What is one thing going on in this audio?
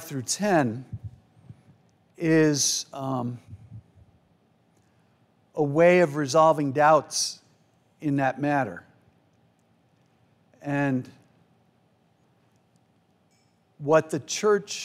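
A man speaks calmly into a microphone in an echoing hall, pausing between phrases.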